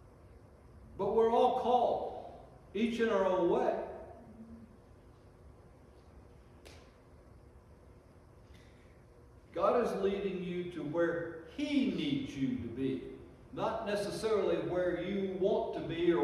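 An elderly man speaks slowly and deliberately into a microphone in a reverberant room.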